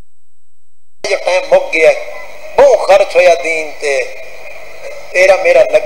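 A man speaks loudly and with feeling into a microphone, heard through loudspeakers in an echoing hall.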